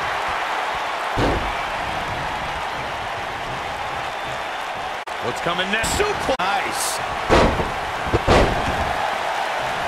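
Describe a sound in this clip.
A body slams hard onto a wrestling mat with a thud.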